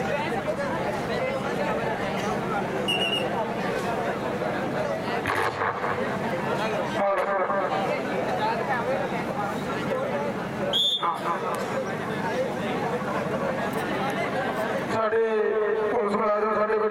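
A large crowd of spectators chatters and cheers outdoors.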